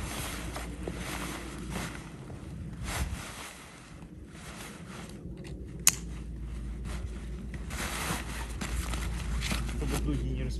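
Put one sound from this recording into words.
Stiff nylon fabric rustles and crinkles.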